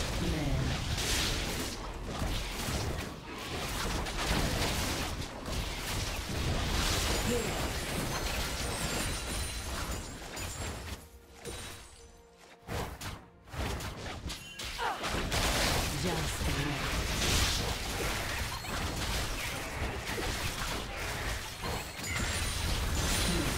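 Game spells crackle and blast as fantasy characters fight.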